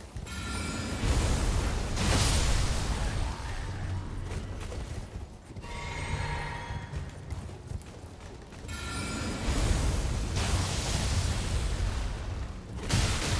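Magic spells burst with a loud whooshing rush.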